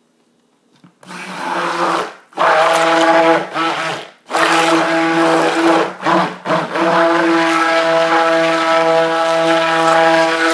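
A stick blender whirs loudly, with a steady hum, stopping briefly now and then.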